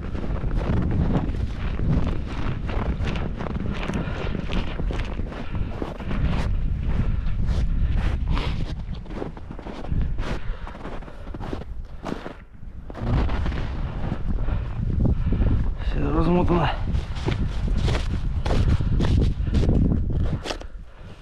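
Boots crunch through snow.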